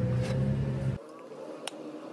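A metal strip knocks against a wooden block.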